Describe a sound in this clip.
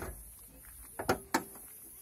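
A van's bonnet latch clicks sharply twice.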